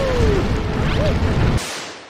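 Fireballs whoosh through the air.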